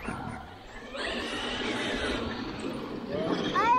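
A small electric motor whines as a remote-control car races over dirt.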